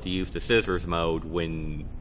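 A button clicks on a control panel.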